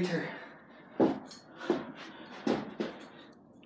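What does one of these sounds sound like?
Shoes thump on a hard floor.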